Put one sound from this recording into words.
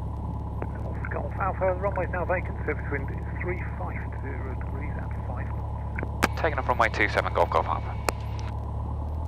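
A man talks over a crackly headset intercom.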